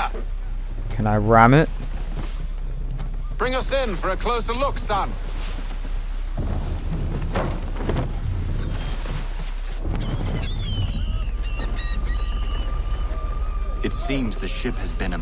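Water splashes against the hull of a sailing ship.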